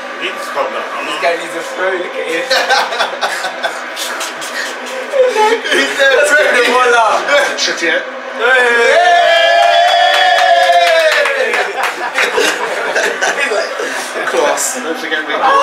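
A group of young men chatter over one another nearby.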